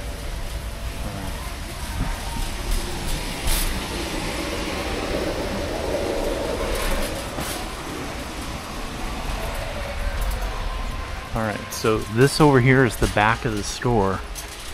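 A shopping cart rolls and rattles over a smooth floor.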